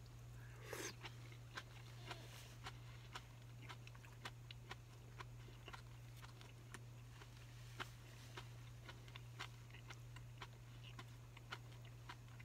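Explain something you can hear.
Chopsticks clink and tap against a bowl.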